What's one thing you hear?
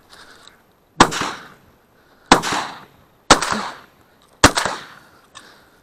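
A shotgun fires several loud shots outdoors, each rolling away in an echo.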